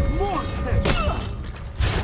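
Steel blades clash and ring.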